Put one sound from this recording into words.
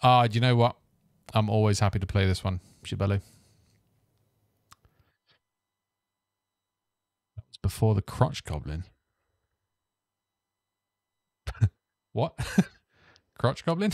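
A man talks calmly and close into a microphone, with pauses.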